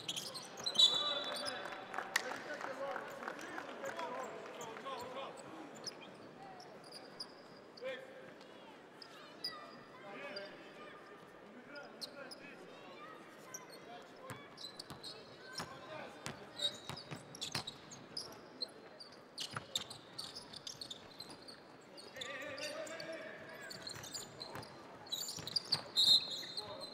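Sneakers squeak on a hardwood basketball court.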